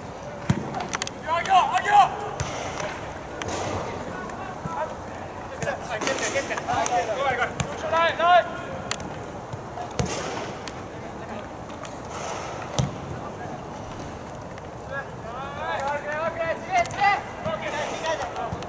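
Young players shout to each other across an open field, some distance away.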